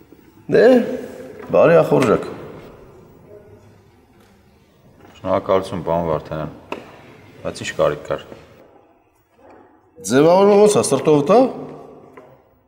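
A middle-aged man speaks calmly and firmly nearby.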